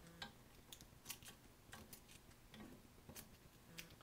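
Scissors snip through plastic sheeting.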